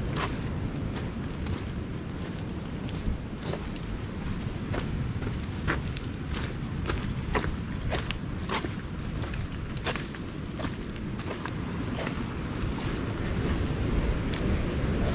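Footsteps crunch on a dirt path with fallen leaves.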